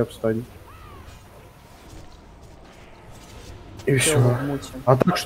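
Magic spells crackle and whoosh in a fight.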